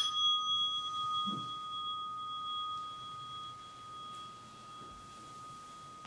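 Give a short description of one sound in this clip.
Cloth rustles softly as a person bows down to the floor.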